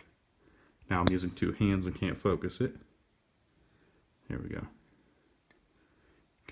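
A folding knife's lock clicks softly.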